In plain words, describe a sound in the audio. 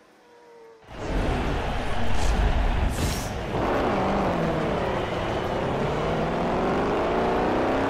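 A car engine revs loudly and roars.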